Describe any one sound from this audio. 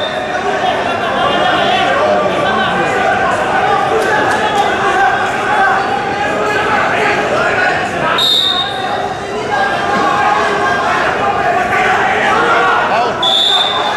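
A crowd of spectators chatters and cheers loudly in a large hall.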